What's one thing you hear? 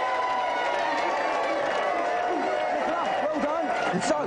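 A crowd claps their hands.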